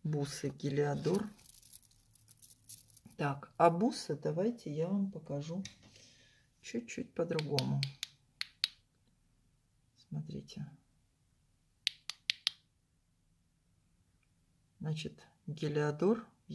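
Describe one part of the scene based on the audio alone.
Stone beads click softly against each other as a necklace is handled.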